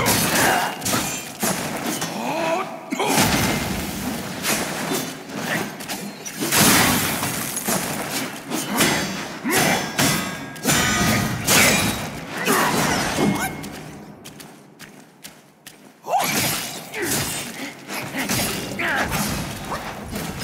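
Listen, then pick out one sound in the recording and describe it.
Blades clash and slash in a fast fight.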